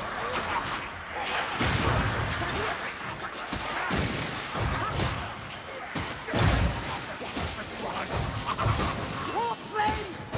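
Weapons slash and thud into creatures in quick, repeated blows.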